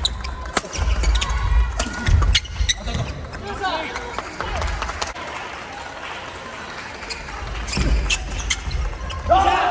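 Shuttlecocks are struck sharply by rackets in a large echoing hall.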